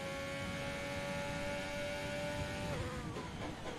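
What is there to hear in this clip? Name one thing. A racing car engine screams steadily at full speed.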